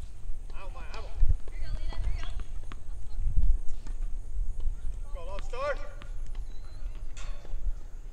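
A tennis ball bounces on a hard court several times.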